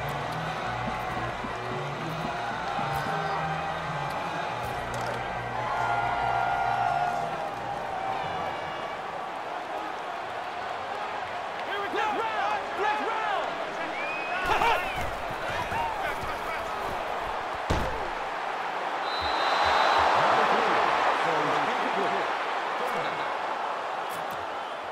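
A large stadium crowd murmurs and roars, swelling loudly near the end.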